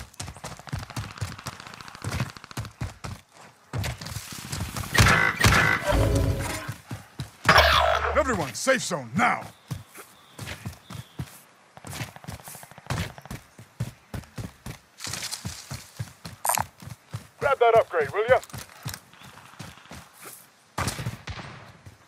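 Footsteps patter quickly over dirt and grass.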